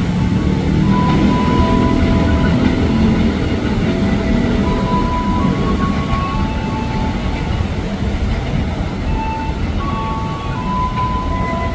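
An electric commuter train rumbles as it approaches on the rails.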